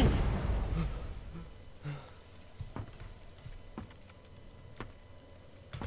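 Footsteps thud slowly on wooden boards.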